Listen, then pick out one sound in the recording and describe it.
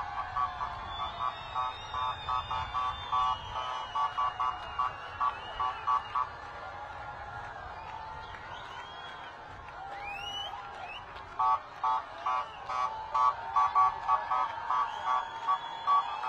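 Car horns honk over and over in a quick rhythm.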